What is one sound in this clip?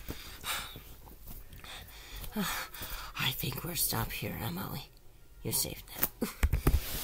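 Soft stuffed toys rustle and thump as a hand shakes them.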